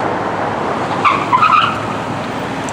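A police car siren gives short yelps nearby.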